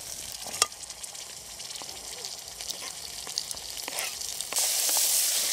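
A knife chops and scrapes on a cutting board.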